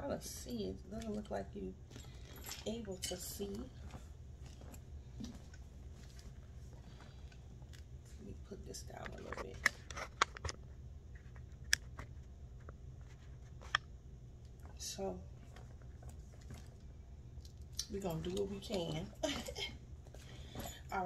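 A leather handbag rustles and creaks as hands open it.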